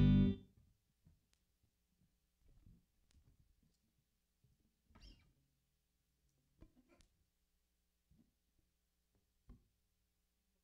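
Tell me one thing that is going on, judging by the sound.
A guitar is faintly bumped and plucked.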